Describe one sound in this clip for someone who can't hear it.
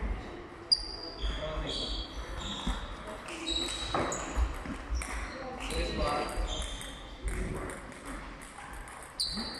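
Sports shoes squeak sharply on a hall floor.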